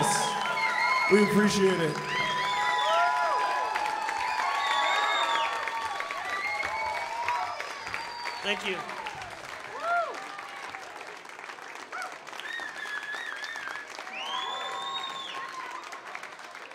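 A crowd cheers and whistles loudly in a large room.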